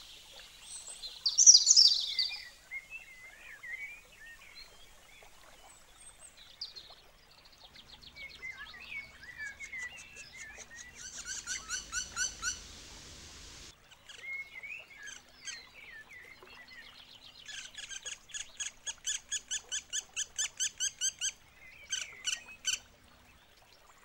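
A woodpecker calls loudly in a rapid series of sharp notes.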